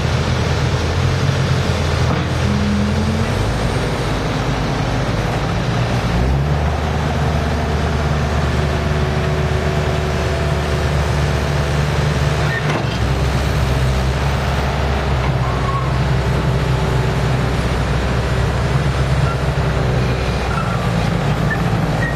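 A diesel engine rumbles steadily and revs up and down.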